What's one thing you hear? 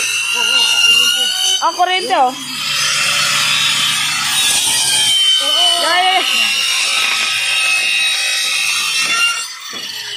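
A circular saw whines steadily as it cuts through a wooden board.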